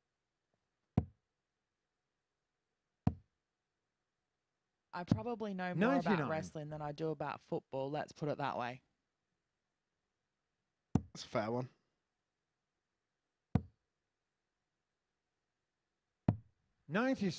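Darts thud into a dartboard.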